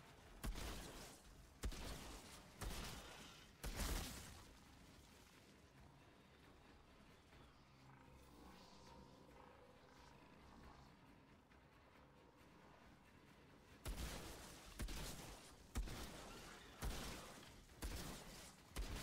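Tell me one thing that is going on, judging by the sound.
Heavy gunfire booms in bursts with ringing echoes.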